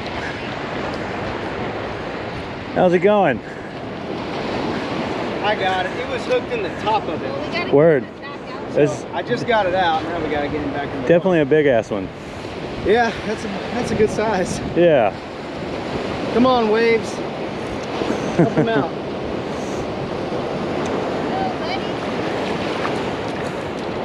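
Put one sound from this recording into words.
Waves wash steadily onto the shore outdoors.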